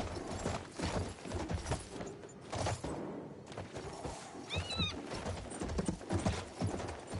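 Horse hooves thud rhythmically at a gallop.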